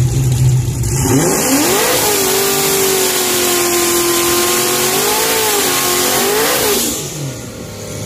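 A car engine roars loudly at high revs during a burnout.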